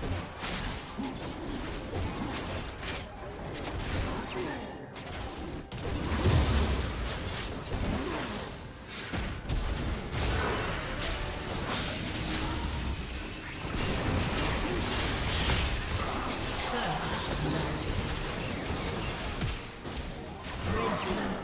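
Game spell effects whoosh and clash in a fast fight.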